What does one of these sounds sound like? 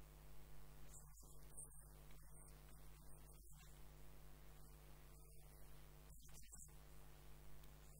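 A paper towel rubs over a wooden goblet.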